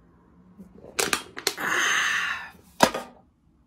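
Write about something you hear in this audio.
A young woman shrieks loudly, close by.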